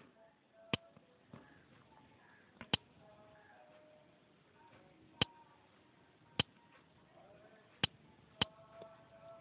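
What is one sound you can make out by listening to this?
A phone gives short tapping clicks.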